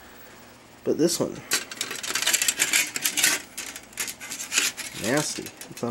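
Thin metal sheets rattle and clink as they are handled.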